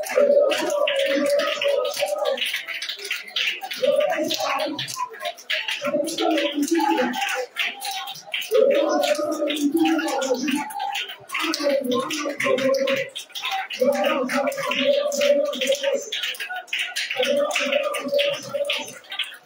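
A man prays loudly and fervently through a microphone over a loudspeaker.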